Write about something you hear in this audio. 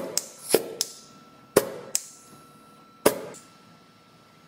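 A caulking gun clicks sharply as its trigger is squeezed.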